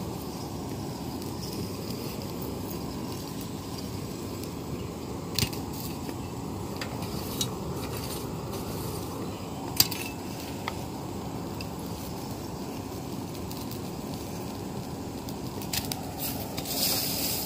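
A metal rod scrapes and clinks against coals.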